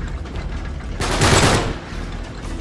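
A rifle fires a loud burst of gunshots.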